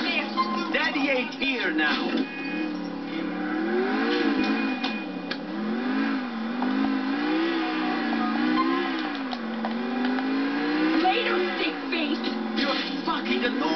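A car engine hums and revs, its pitch rising and falling as it drives.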